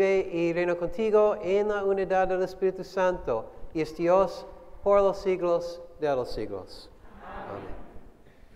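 A man sings a chant in a slow, steady voice, close to a microphone, in an echoing room.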